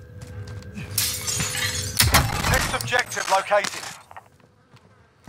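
A metal crate opens with a loud rattle and shimmer.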